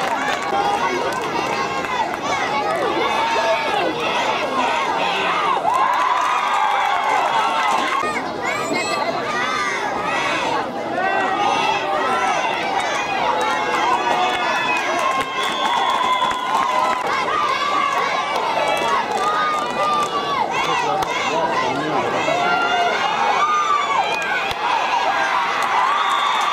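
Young players shout and call out on the field.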